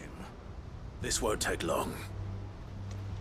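A young man speaks in a low, steady voice.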